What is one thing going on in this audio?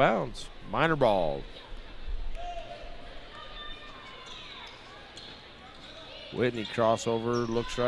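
A basketball bounces on a hard wooden court.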